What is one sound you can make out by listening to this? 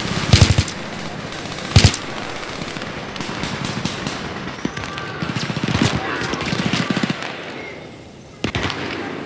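A rifle fires loud shots in short bursts.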